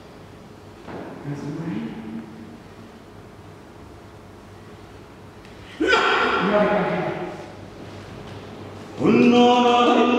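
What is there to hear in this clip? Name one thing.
A woman sings out in long, wavering notes in a large echoing hall.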